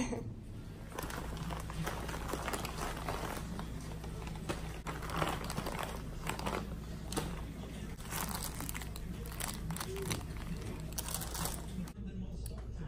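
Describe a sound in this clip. A plastic bag crinkles and rustles in hands.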